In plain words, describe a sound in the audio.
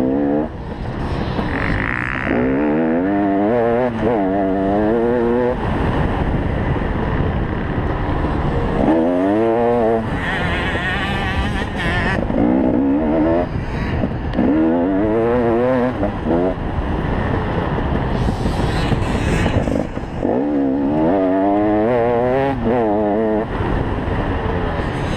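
A motorcycle engine revs up and down hard, close by.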